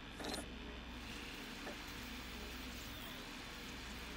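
A handheld electronic device hums and beeps softly.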